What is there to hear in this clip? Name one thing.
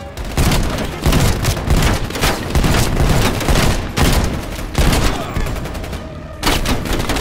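Gunshots fire in rapid bursts with loud echoing blasts.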